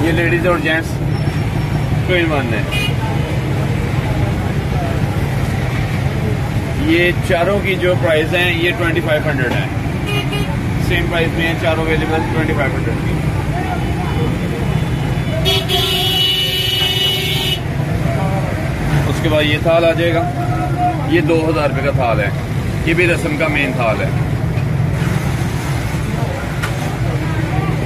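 Men talk nearby amid a busy crowd.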